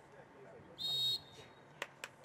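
A referee's whistle blows a short blast.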